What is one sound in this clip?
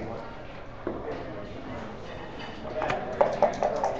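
Checkers click and clack as they are moved on a wooden board.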